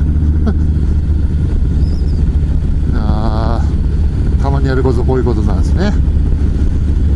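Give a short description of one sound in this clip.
A motorcycle engine rumbles steadily while riding.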